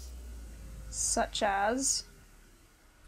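A young woman speaks briefly into a close microphone.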